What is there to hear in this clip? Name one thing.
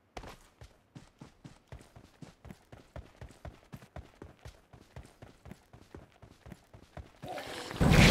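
Footsteps thud quickly and steadily across the ground.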